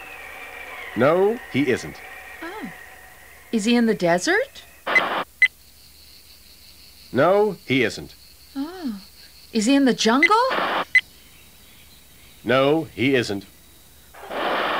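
A man speaks in a silly cartoonish voice.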